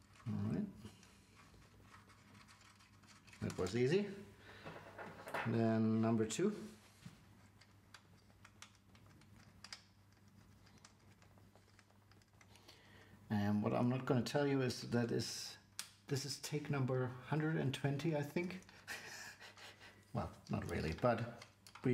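Small plastic and metal parts click and rattle as fingers work them.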